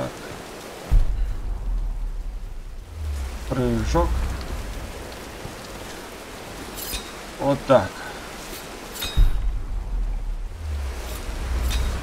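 A waterfall roars with a deep rumble.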